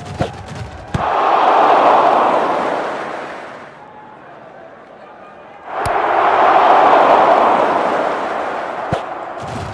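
A large crowd roars and cheers, swelling and fading twice.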